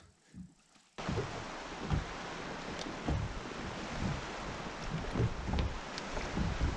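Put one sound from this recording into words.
Wind gusts and waves lap on open water.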